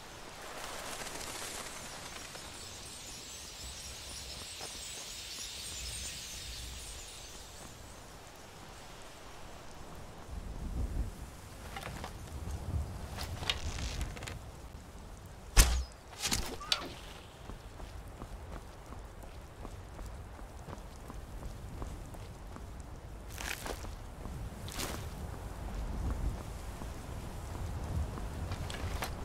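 Footsteps crunch on stone and earth.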